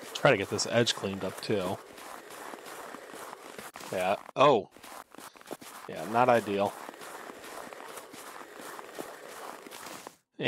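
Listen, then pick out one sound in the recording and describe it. A shovel scrapes across packed snow.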